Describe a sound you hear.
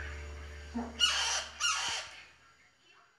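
A parrot squawks loudly close by.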